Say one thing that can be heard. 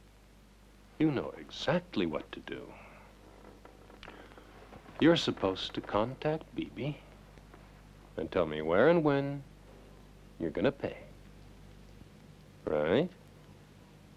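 A man speaks quietly and closely in a low voice, with pauses.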